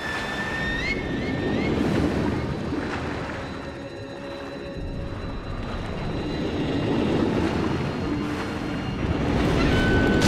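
Water rushes and gurgles, muffled, as a swimmer moves underwater.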